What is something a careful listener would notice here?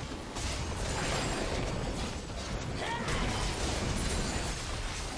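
Magic spells whoosh and crackle in a fast game battle.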